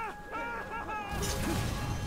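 A sword slashes with a sharp swish.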